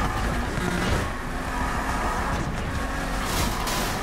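Tyres screech as a car drifts through a turn.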